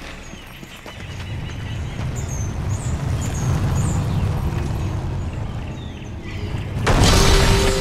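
A heavy stone ball rolls and rumbles over a stone floor.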